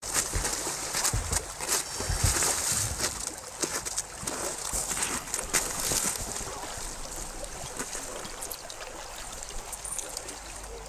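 Water splashes as people thrash in icy water.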